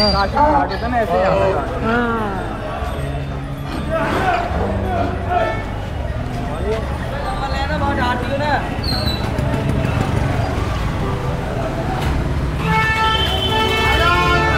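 A busy crowd of men talks and calls out nearby in a narrow street.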